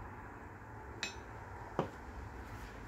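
A metal knife clinks as it is set down on a table.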